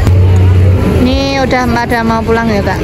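A young boy speaks up close, loudly and excitedly.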